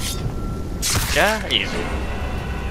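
A creature lets out a wavering cry of pain.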